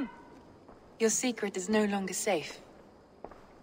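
A woman speaks in a low, serious voice.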